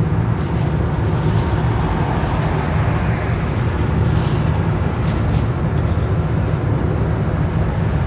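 A lorry roars past close by.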